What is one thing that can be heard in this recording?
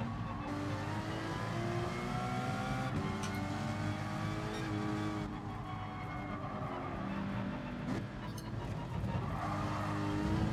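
A racing car engine roars at high revs, rising in pitch and dropping as gears change.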